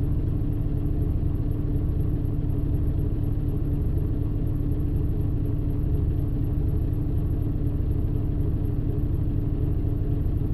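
A bus engine idles with a steady low rumble close by.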